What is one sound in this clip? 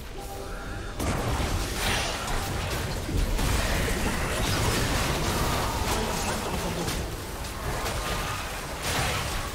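Game spell effects and hits crash and whoosh in a busy fight.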